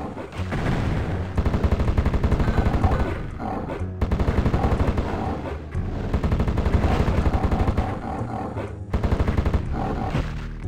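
A spiked mace thuds in quick repeated blows.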